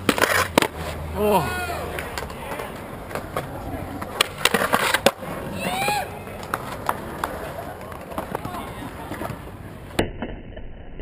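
A skateboard deck clacks sharply against concrete.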